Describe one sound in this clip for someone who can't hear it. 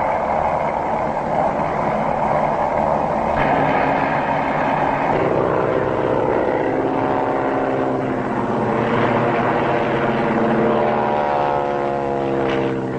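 Propeller plane engines drone steadily overhead.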